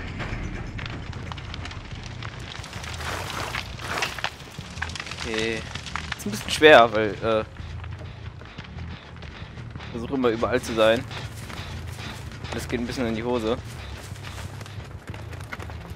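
A fire crackles and burns nearby.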